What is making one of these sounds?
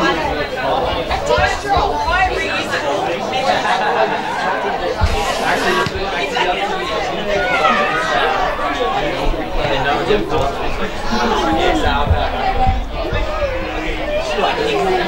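Players shout and call out to each other across an open field.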